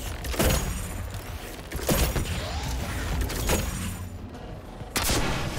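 Heavy gunshots boom in loud bursts every second or two.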